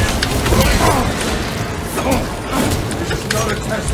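A blade hacks and slashes into flesh.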